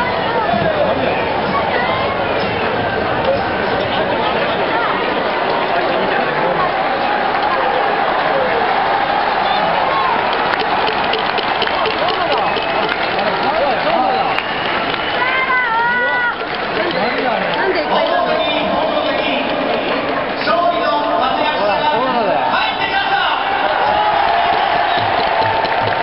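A large crowd cheers and chatters loudly in a big echoing stadium.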